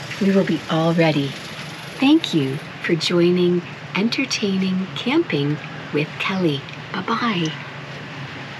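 A woman talks cheerfully and with animation close by.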